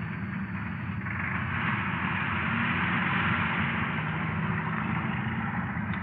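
A delivery van's engine runs as the van pulls away.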